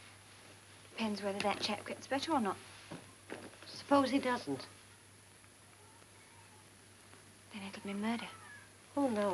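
An older woman speaks, close by.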